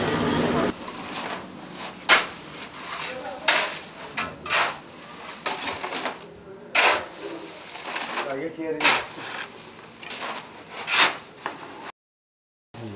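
A shovel scrapes and scoops gravel.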